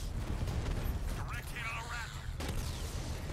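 A young man talks into a microphone.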